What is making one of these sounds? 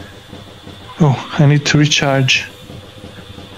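A young man speaks briefly and with animation close to a microphone.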